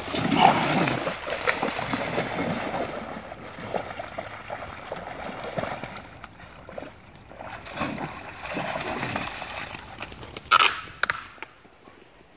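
Dogs splash and wade through shallow water.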